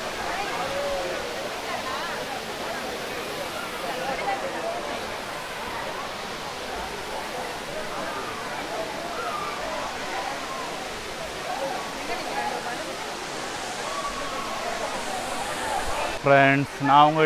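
A waterfall roars steadily.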